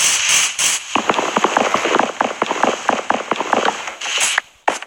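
Quick, repeated knocks sound as wood is chopped.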